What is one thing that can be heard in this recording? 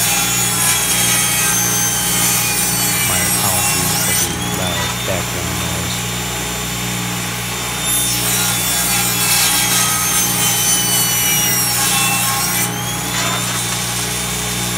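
A table saw motor whirs steadily.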